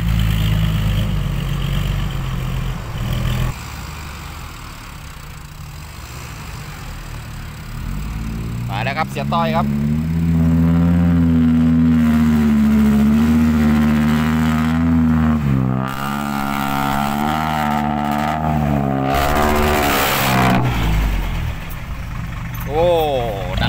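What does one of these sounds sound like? A heavy diesel truck engine rumbles and revs close by.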